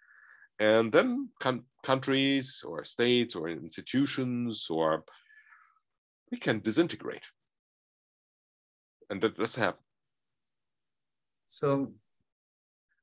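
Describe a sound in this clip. A middle-aged man talks with animation over an online call.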